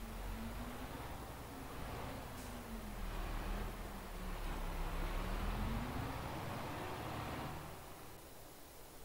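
A tractor engine rumbles steadily, rising and falling in pitch.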